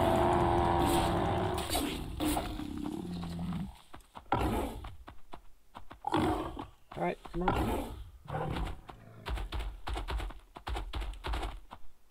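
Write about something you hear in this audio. Heavy footsteps of a large animal thud steadily on sand.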